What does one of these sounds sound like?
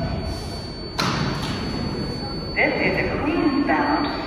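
Train doors slide open with a sharp hiss of air.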